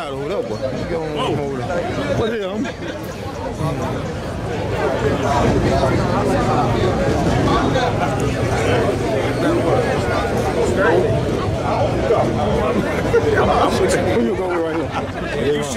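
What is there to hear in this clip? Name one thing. A crowd of men and women talks and chatters outdoors.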